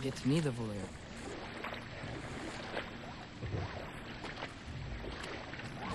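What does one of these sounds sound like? Oars splash softly in water.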